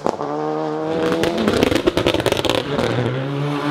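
A rally car exhaust crackles and pops sharply.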